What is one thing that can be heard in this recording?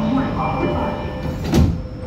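Sliding train doors close with a thud.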